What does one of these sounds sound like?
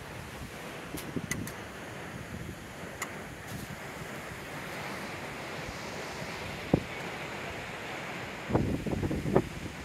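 A walking stick taps and knocks on rocks.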